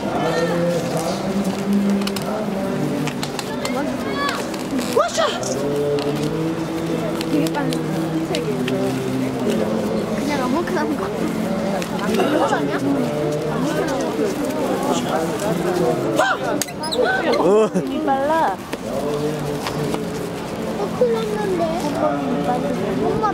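Rubber balloons squeak and creak as they are twisted.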